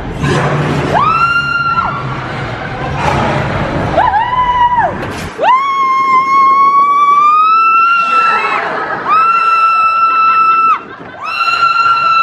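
A woman screams loudly in long, high cries.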